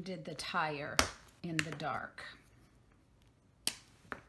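A plastic marker clicks as it is set down on a table.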